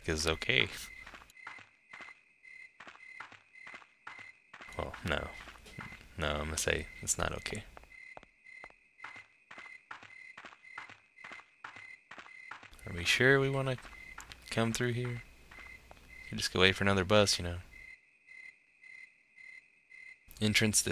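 Light, quick footsteps run across hard ground.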